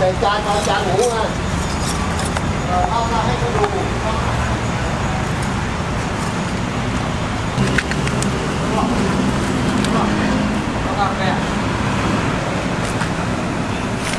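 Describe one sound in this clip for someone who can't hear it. Crispy roasted skin crackles as it is handled.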